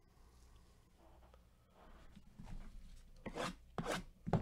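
Hands rub and tap a wrapped cardboard box.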